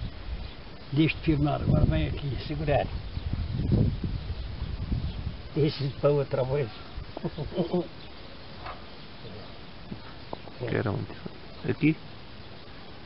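An elderly man talks calmly nearby.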